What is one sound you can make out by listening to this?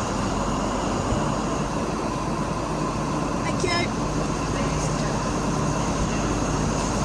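A diesel train engine rumbles steadily as a train pulls in.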